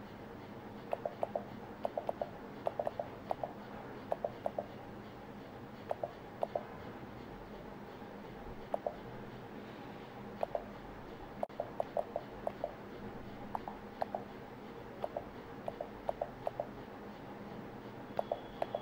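Keys on a touchscreen keyboard click with each press.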